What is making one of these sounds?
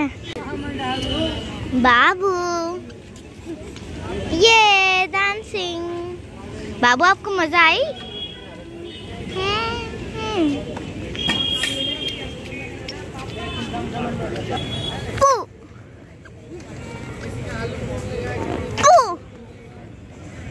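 A woman talks playfully to a toddler close by.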